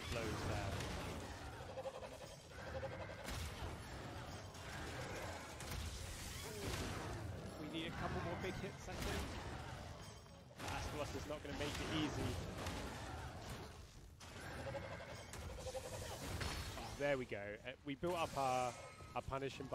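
Game monsters clash with heavy thuds and roars.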